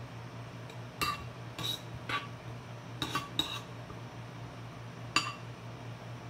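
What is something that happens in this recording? A metal spoon scrapes and clicks against a bowl.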